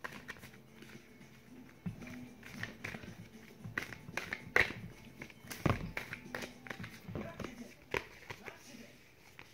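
Cards flutter and snap as a deck is shuffled by hand.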